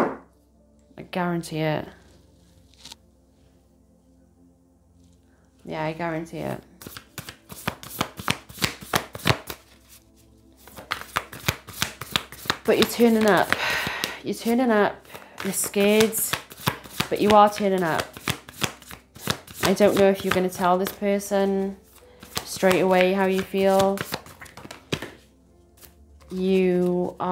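A young woman speaks calmly and warmly, close to a microphone.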